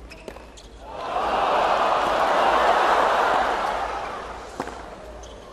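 A crowd cheers and applauds loudly, then fades.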